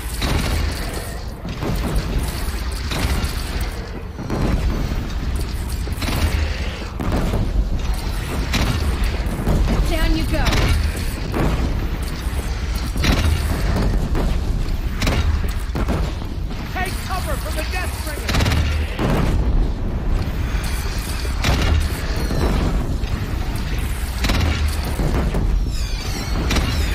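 Weapons clash and strike with loud thuds in a fight.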